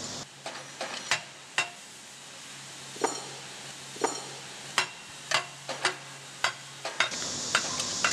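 A metal rod knocks sharply against metal, again and again.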